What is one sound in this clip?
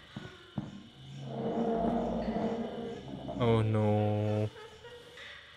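A young man speaks and exclaims close to a microphone.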